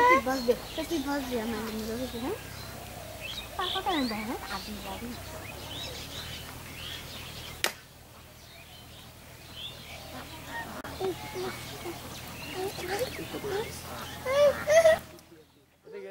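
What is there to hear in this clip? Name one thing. Water splashes in a shallow stream.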